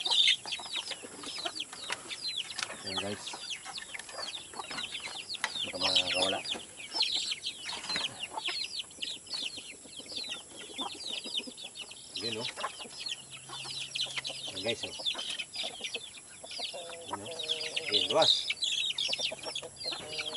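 Birds chirp and tweet rapidly nearby.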